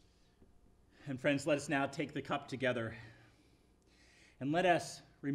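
A man speaks clearly and calmly through a microphone.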